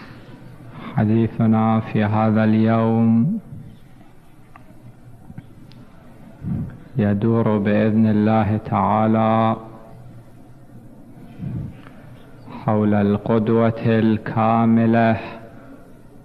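A man chants into a microphone in long, loud phrases with pauses between them.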